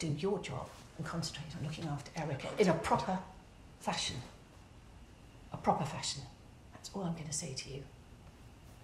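A woman speaks firmly and sternly nearby.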